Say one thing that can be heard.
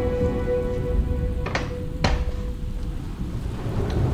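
A glass door slides open.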